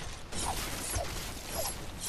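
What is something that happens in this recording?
A pickaxe swings and strikes.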